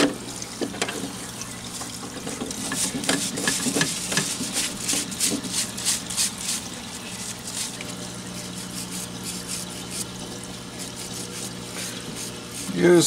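A stiff brush scrubs a metal part in solvent.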